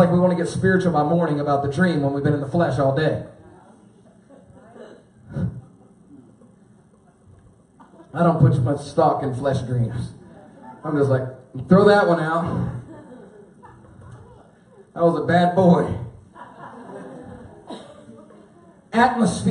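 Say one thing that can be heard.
A man speaks with animation into a microphone over loudspeakers, in a large echoing hall.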